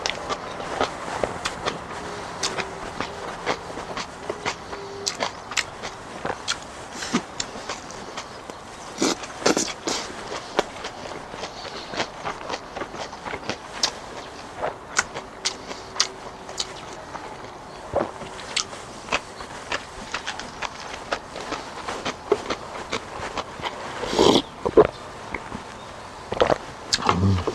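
A young man chews and slurps food noisily up close.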